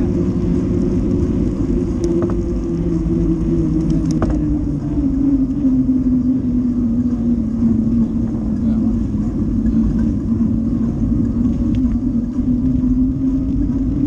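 An electric bike motor whines steadily, shifting slightly in pitch.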